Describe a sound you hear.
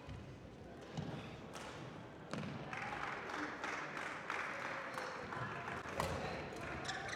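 Rackets hit a shuttlecock with sharp pops.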